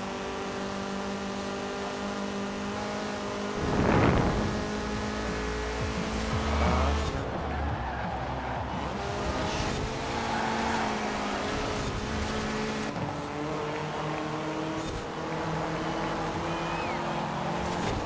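A car engine roars steadily at high revs, shifting gears now and then.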